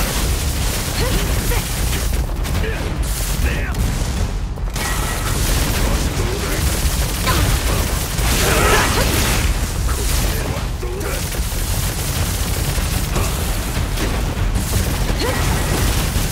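Explosions burst with loud booms.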